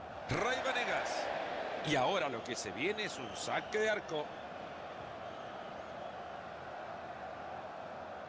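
A large stadium crowd murmurs and cheers steadily in the background.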